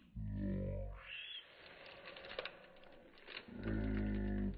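A plastic sheet crinkles under a hand.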